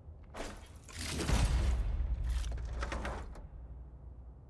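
A heavy chest lid slides open with a loud whoosh.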